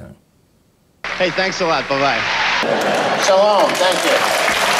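A man speaks into a microphone in a large hall.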